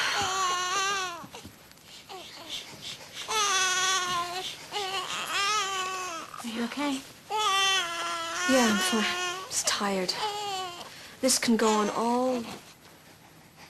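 A second young woman answers in a tense, low voice nearby.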